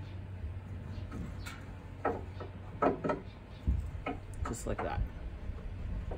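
A metal latch clicks.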